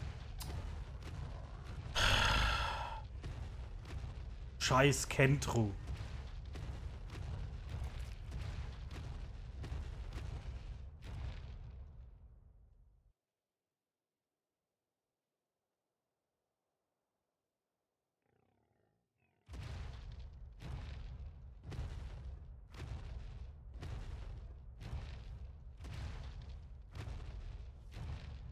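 Heavy footsteps of a large creature thud steadily on the ground.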